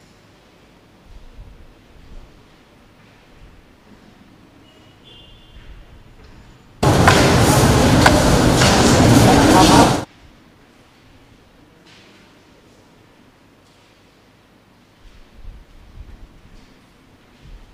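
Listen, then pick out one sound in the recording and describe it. Footsteps shuffle softly in a large echoing hall.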